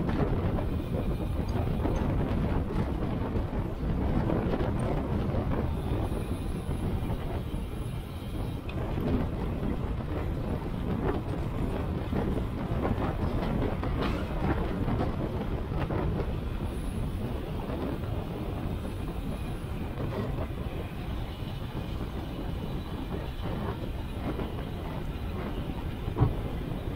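Wind rushes loudly past a fast-moving bicycle.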